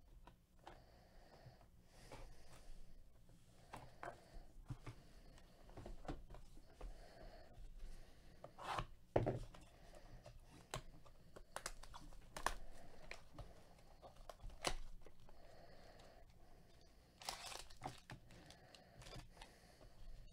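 Gloved hands shuffle and tap cardboard card boxes together.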